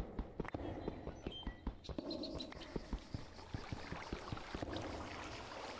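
A pickaxe taps rapidly against stone in a video game.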